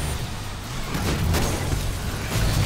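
A car scrapes and crashes against a wall.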